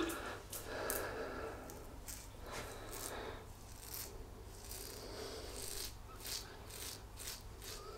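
A double-edge safety razor scrapes in short strokes through lathered stubble.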